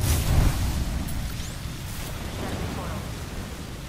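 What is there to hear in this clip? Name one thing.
A gun clicks and clatters as a weapon is swapped and readied.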